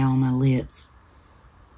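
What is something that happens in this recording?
A middle-aged woman speaks briefly, close to the microphone.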